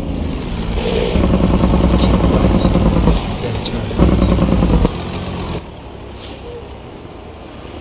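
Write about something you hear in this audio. A truck engine rumbles loudly, then drops to a quieter hum.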